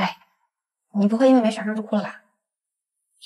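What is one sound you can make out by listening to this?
A young woman speaks close by in a mocking tone.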